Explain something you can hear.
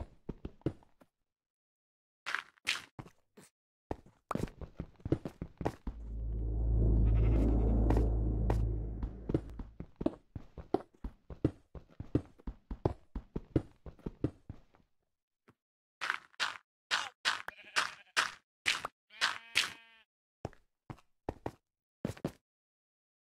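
A pickaxe digs into stone and earth with quick, repeated crunching knocks.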